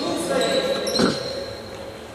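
A ball is kicked with a hard thud.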